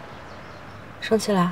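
A young woman speaks briefly nearby.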